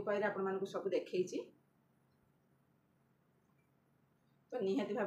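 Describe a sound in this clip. A woman speaks calmly and close by.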